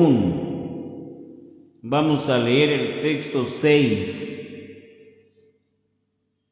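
A man sings loudly into a microphone, his voice echoing through a large hall.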